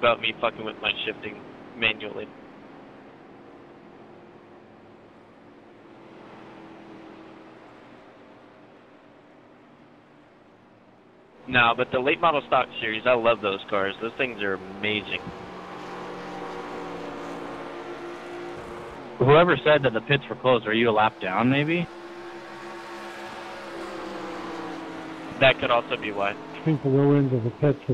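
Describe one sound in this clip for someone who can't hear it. Race car engines drone steadily as cars speed past.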